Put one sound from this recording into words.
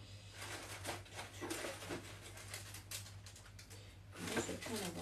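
Cardboard packaging rustles and scrapes as it is handled close by.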